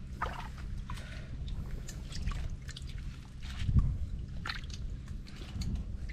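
Feet squelch and suck in wet mud.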